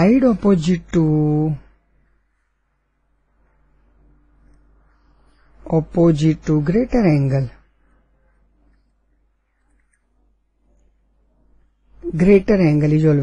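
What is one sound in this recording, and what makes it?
An elderly woman speaks slowly and calmly through a microphone, in short phrases with pauses.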